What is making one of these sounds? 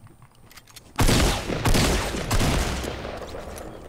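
A rifle fires a rapid burst of shots at close range.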